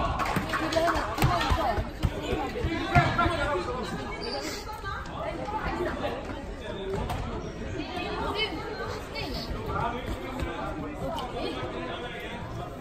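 Young girls shout and call out across a large echoing hall.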